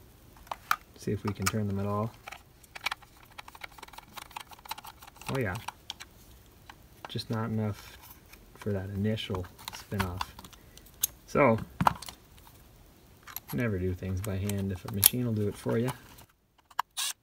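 A powered screwdriver whirs as it turns screws.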